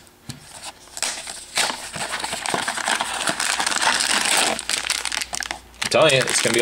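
A cardboard box is torn open.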